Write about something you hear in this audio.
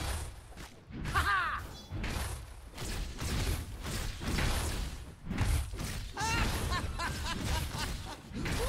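Game magic effects whoosh and chime.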